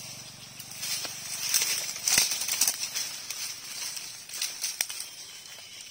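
Dry leaves and twigs crackle underfoot.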